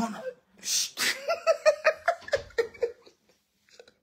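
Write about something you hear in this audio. A woman laughs close by.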